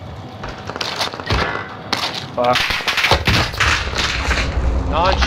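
Gunshots crack in quick bursts nearby.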